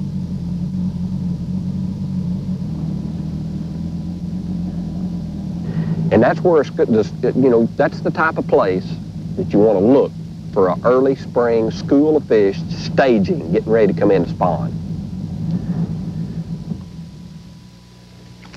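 A boat engine hums steadily and then dies away.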